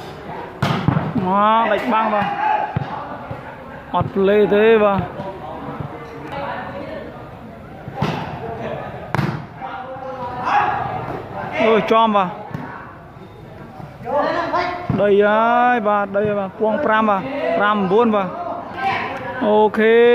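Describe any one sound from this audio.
Young men shout calls to each other, echoing under a large roof.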